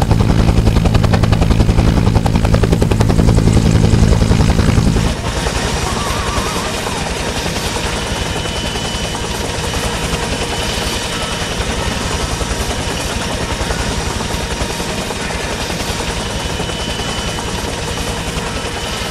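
A helicopter's rotor thumps rapidly and steadily, loud at first and then more muffled.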